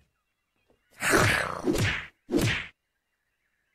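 A zombie growls loudly.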